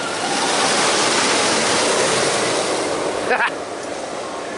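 A roller coaster train roars past overhead and fades away.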